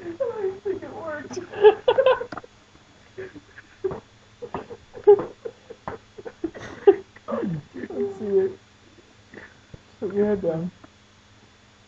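Another young man laughs and talks close to the microphone.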